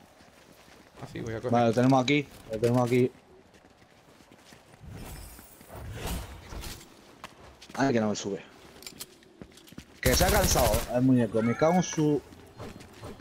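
A man talks animatedly into a close microphone.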